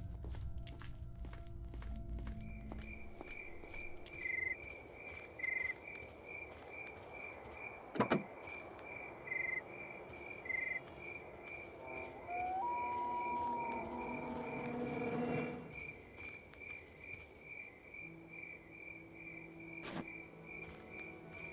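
Footsteps tap steadily on hard ground.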